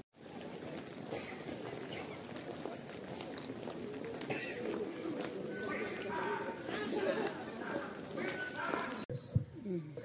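Many footsteps shuffle along a road.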